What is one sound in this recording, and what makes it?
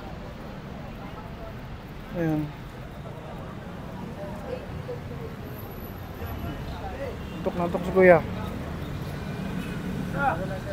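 A crowd chatters nearby.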